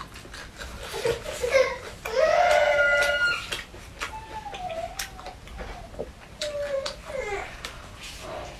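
A young woman hums and makes small voiced sounds while eating.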